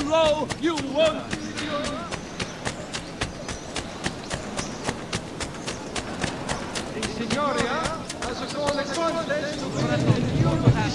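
Footsteps run quickly on stone pavement.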